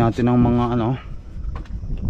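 A plastic cap clicks open.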